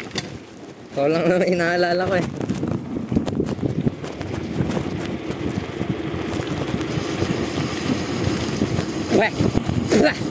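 Bicycle tyres roll and rumble over a rough concrete road.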